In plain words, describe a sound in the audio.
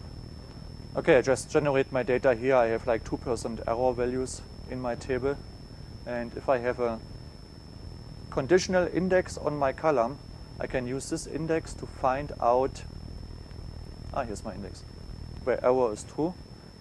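A man lectures calmly through a microphone in a large room.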